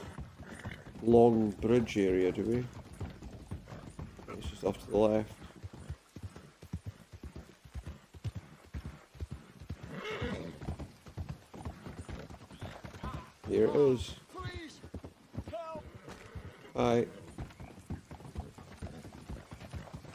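A horse's hooves clop steadily on wooden planks.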